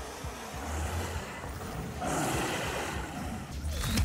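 A low electronic hum swells from a swirling portal.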